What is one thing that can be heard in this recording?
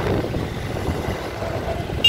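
A bus drives past close by.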